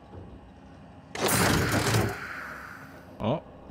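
A glass canister lifts open with a mechanical whoosh.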